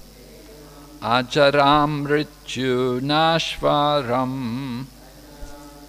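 An elderly man sings a melodic chant into a microphone.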